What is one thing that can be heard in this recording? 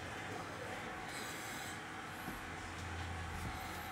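Trading cards slide and shuffle between hands.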